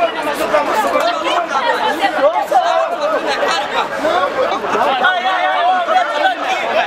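Several men and women shout and argue excitedly close by.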